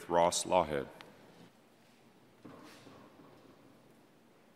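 A man speaks briefly through a microphone in a large hall.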